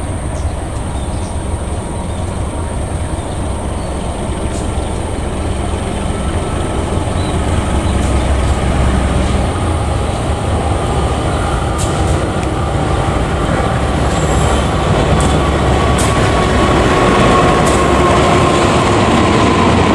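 A diesel locomotive rumbles as it approaches and grows steadily louder.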